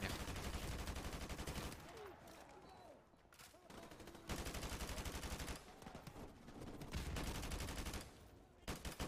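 A rifle fires rapid bursts of automatic gunfire.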